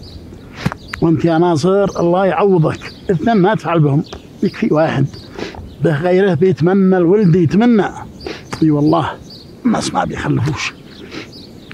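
A man sings in a wavering, mournful voice.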